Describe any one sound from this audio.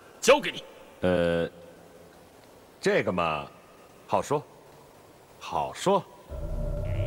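A young man answers with a laugh in his voice, close by.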